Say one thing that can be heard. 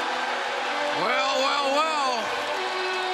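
A man in the crowd lets out a loud, long whoop.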